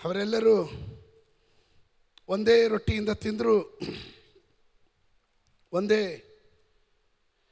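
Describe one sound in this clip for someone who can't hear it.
A man speaks slowly and with emphasis through a microphone in a large echoing hall.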